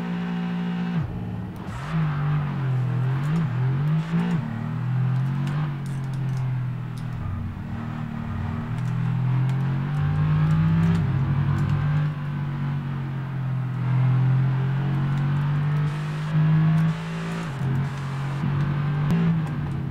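A racing car engine roars and rises and falls in pitch as it speeds up and shifts gears.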